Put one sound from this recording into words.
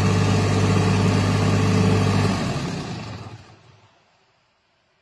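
A small engine runs loudly with a steady rumble, then winds down and stops.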